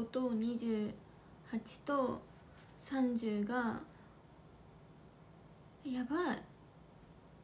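A young woman speaks softly close to a microphone, in short bursts.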